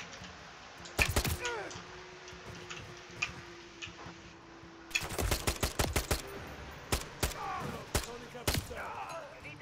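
A rifle fires in short, rapid bursts.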